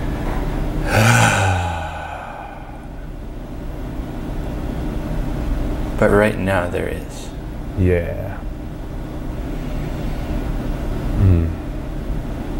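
A man speaks calmly and briefly, close to a microphone.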